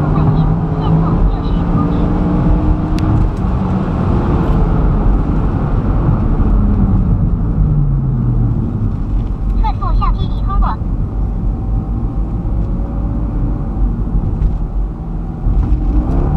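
Tyres and wind rush loudly at speed.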